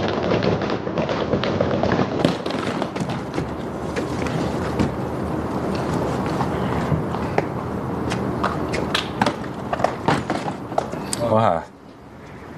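Cardboard boxes thump into a car boot.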